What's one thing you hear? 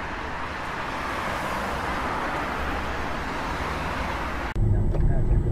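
Tyres hiss on a wet road as a car drives through the rain.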